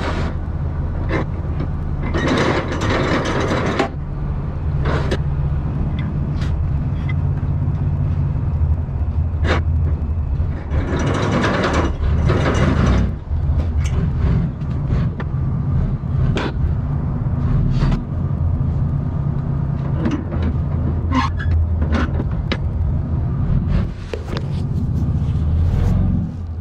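A heavy truck engine rumbles steadily close by.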